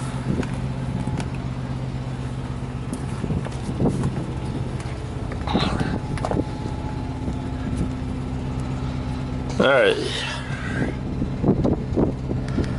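A diesel engine idles nearby with a steady low hum.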